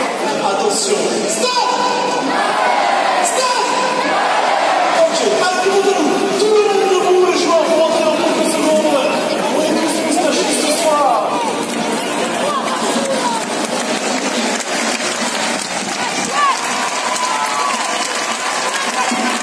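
A large stadium crowd sings and chants in an open-air stadium.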